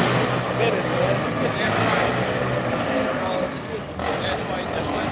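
Several men talk and call out close by, outdoors.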